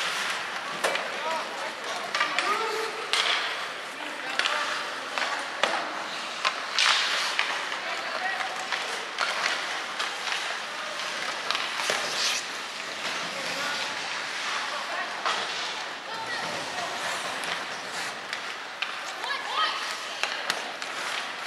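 Hockey sticks clack against a puck and each other.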